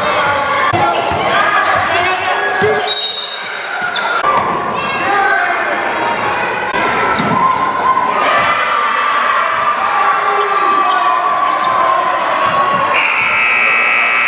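A basketball bounces on the floor.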